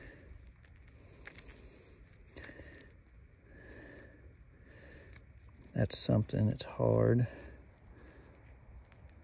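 Gloved fingers crumble dry clay with soft gritty crackles.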